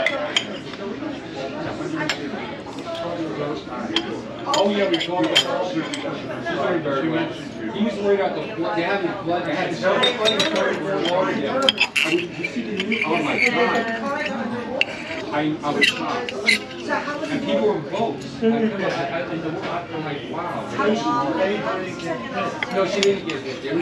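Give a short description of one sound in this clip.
A woman talks calmly close by.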